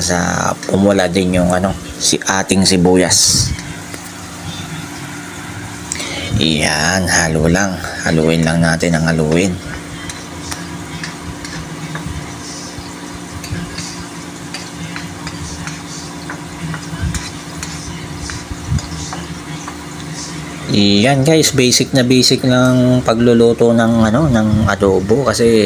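A metal spatula scrapes and clinks against a metal pan.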